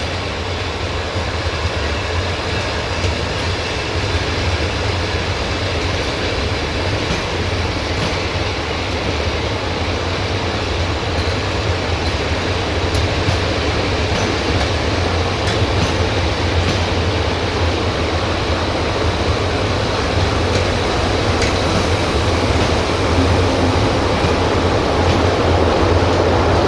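A passenger train rolls slowly past with a steady rumble.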